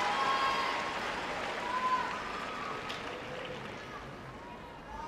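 A large crowd applauds and cheers in an echoing arena, then slowly quiets.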